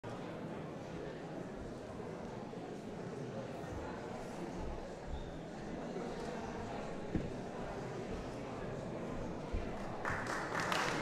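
An audience murmurs quietly in a large echoing hall.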